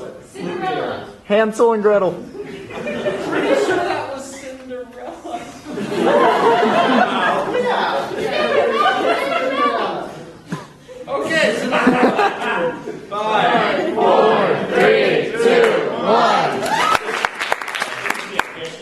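Young men talk and call out with animation in a large echoing hall.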